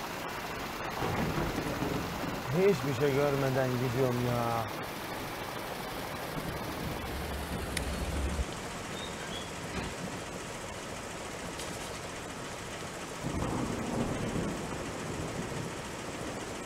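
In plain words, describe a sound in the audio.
Rain patters steadily on a windscreen.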